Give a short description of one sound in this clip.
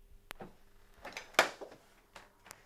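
A telephone handset clatters as it is picked up.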